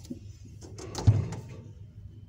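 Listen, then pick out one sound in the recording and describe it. A metal block knocks as hands set it down.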